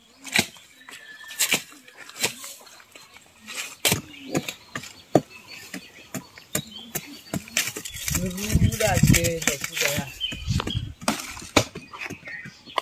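Hands scrape and pat loose soil with short taps.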